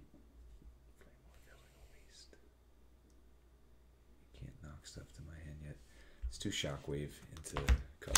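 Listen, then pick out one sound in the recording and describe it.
Cards tap and slide on a table.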